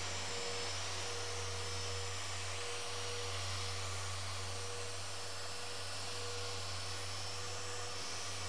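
An electric polisher whirs steadily against a car body.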